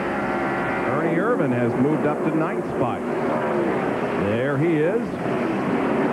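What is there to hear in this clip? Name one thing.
Race cars roar past one after another, their engine pitch rising and falling.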